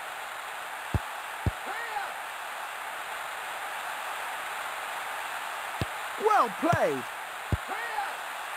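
A football is kicked with short thuds.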